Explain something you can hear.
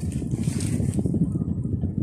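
An electric welding arc crackles and sizzles.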